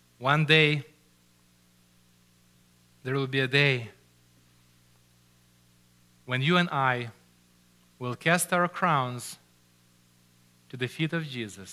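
A middle-aged man speaks slowly and deliberately into a microphone, with pauses between phrases.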